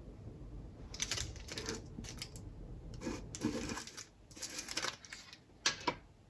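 A metal jar lid is twisted open.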